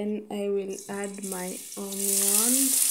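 Chopped onions drop into hot oil and sizzle loudly.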